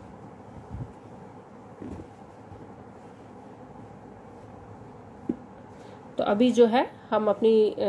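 Hands rustle and rub soft knitted wool.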